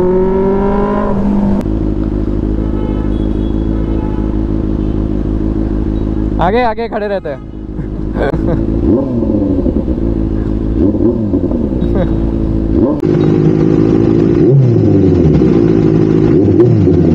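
A motorcycle engine rumbles steadily close by and revs up now and then.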